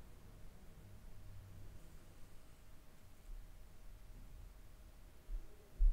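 A stethoscope chest piece rubs and taps softly against bare skin, heard up close.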